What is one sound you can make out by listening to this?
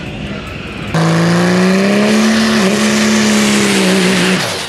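A truck engine roars loudly close by, its pitch rising and wavering.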